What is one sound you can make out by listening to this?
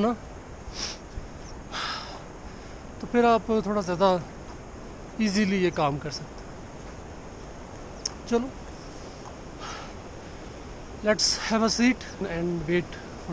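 A young man talks close by in short bursts.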